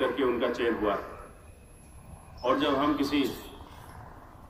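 A man speaks loudly into a microphone, heard through a loudspeaker.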